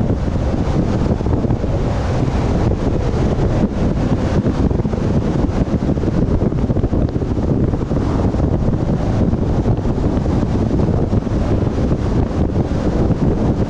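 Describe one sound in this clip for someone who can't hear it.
Tyres roll steadily on a paved road.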